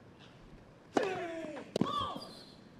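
A young man grunts loudly as he hits the ball.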